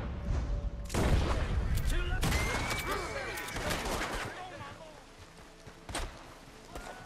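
Gunshots crack several times.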